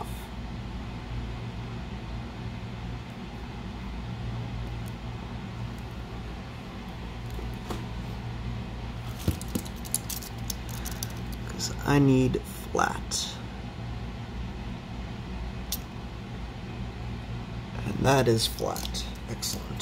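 Small parts click and tap softly as fingers handle them.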